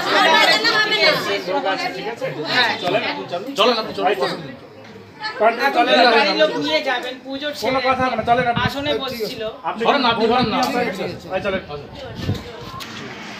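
Several women shout and argue loudly and excitedly close by.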